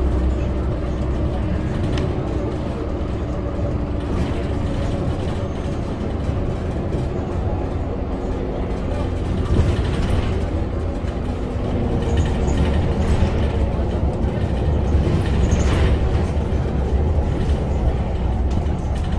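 Tyres hum on the road as the bus drives along.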